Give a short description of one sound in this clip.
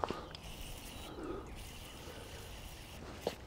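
Lubricant sprays onto a bicycle derailleur with a soft hiss.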